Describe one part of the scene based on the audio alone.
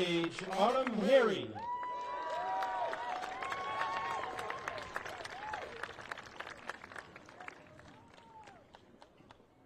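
A crowd cheers and whistles outdoors.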